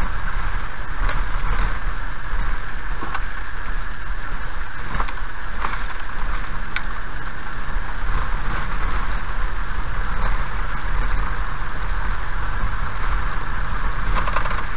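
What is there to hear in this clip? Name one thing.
A car engine hums steadily as the car drives slowly.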